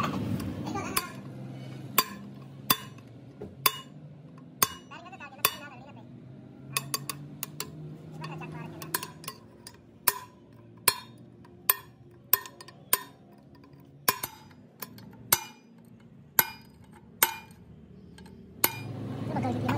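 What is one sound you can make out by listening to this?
A hammer strikes a metal chisel with sharp ringing blows.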